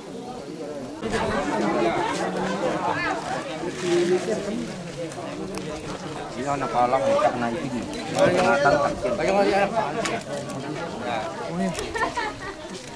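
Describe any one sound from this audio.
A crowd of men and women talk and call out nearby outdoors.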